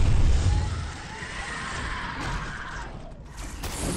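An energy blast crackles and hums.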